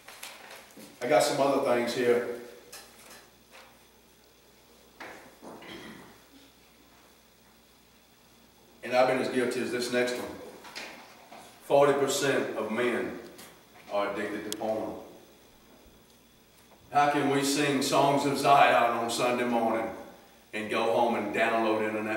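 A middle-aged man speaks calmly into a room with a slight echo, pausing between phrases.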